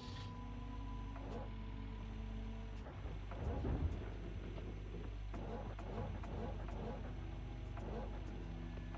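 A diesel engine rumbles steadily at idle.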